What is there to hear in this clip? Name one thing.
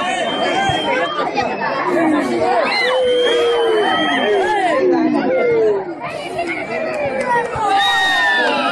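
A large crowd of boys cheers and shouts outdoors.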